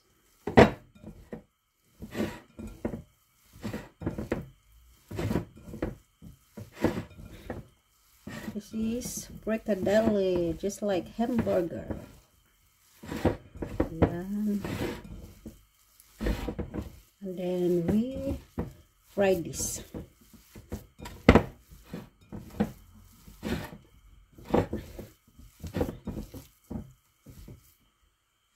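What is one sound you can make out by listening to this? Hands squish and knead a wet mixture in a glass bowl.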